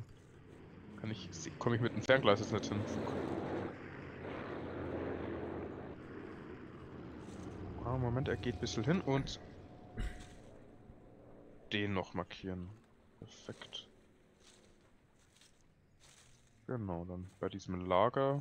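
Footsteps rustle through tall grass and leaves.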